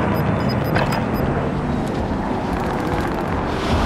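Wind rushes past during a freefall.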